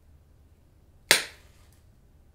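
A match strikes with a sharp scrape.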